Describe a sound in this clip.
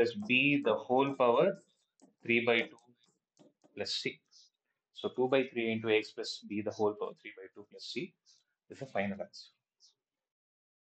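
A man explains calmly, close to a microphone.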